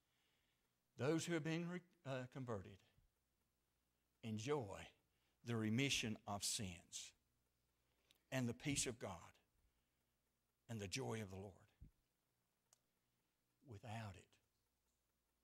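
An elderly man speaks calmly and slowly into a microphone, with pauses between phrases.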